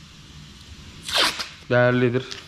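Masking tape rips as it is pulled off a roll.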